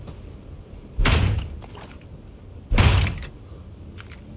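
Heavy blows thud against a wooden door.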